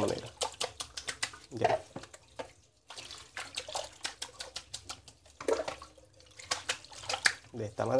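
Water pours from a bowl and splashes onto a wet surface.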